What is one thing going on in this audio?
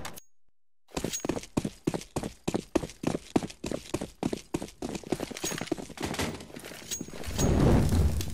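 Footsteps patter on concrete.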